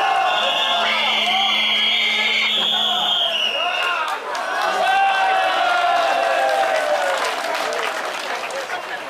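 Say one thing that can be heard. Men chant and shout together loudly outdoors.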